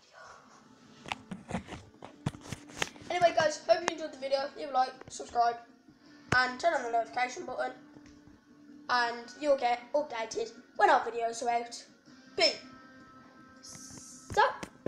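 A boy talks with animation close to a phone's microphone.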